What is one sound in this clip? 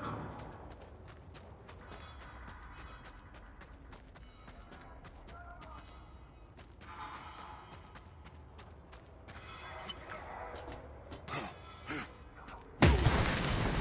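Footsteps crunch quickly over gravel.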